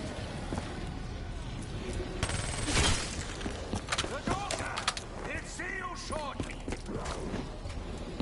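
Zombies groan and snarl nearby.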